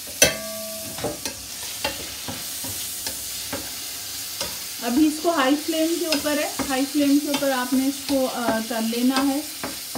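A wooden spatula scrapes and taps against a frying pan.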